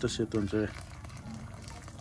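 Thick liquid splashes as a ladle pours it back into a pan.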